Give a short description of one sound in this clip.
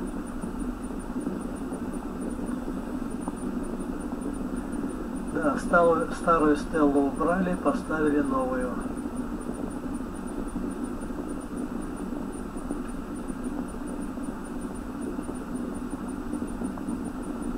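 An engine idles steadily close by.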